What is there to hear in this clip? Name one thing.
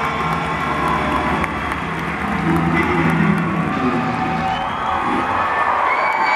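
A rock band plays loudly through a large sound system.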